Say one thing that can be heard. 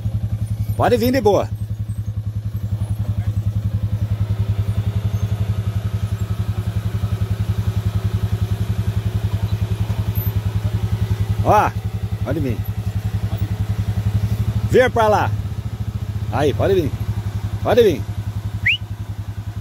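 A quad bike engine chugs steadily at low revs.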